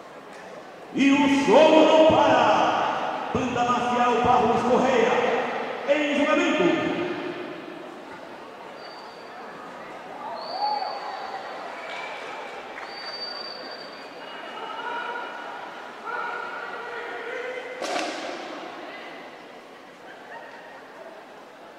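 A marching band plays music in a large echoing hall.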